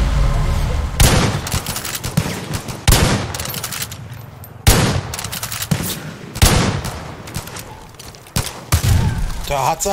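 A rifle fires loud, sharp shots that echo outdoors.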